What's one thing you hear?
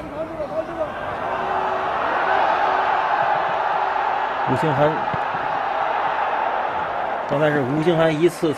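A large stadium crowd roars with excitement.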